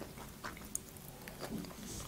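A young woman licks and smacks her fingers close to a microphone.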